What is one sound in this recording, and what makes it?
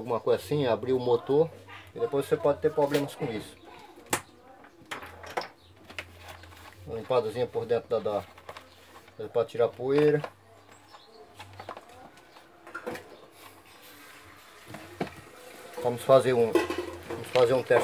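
Plastic parts click and knock as they are handled.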